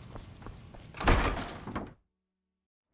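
A heavy wooden door swings open.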